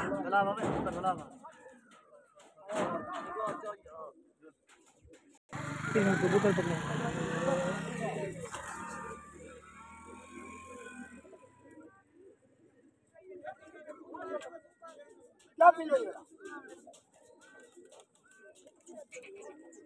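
Pigeons coo and murmur nearby, outdoors.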